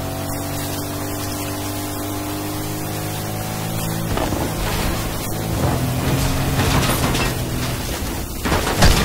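A car engine hums steadily as a vehicle drives over sand.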